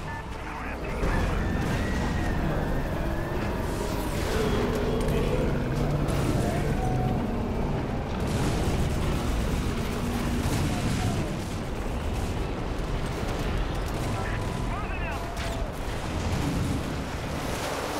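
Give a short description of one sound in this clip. A tank engine rumbles loudly.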